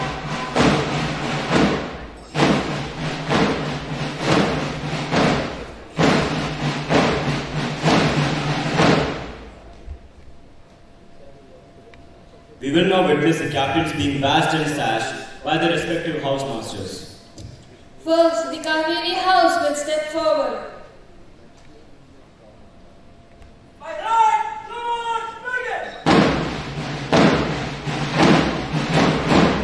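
Music plays loudly over loudspeakers in a large hall.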